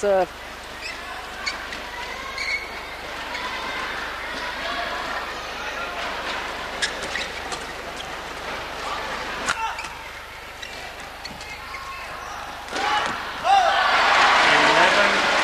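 A crowd murmurs and cheers loudly.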